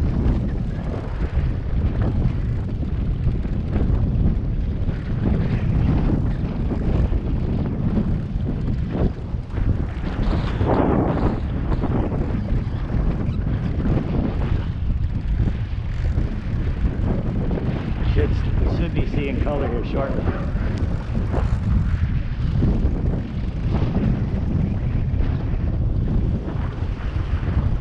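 Waves churn and splash against a moving boat.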